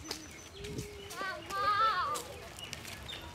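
A child calls out nearby.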